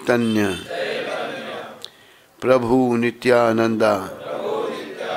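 An elderly man sings into a microphone in long, held phrases.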